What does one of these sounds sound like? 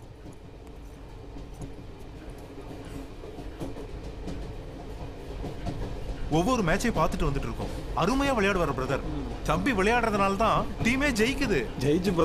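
A commuter train rumbles and rattles along.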